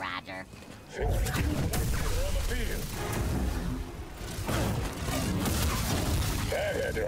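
Lightsabers hum and clash in a fight.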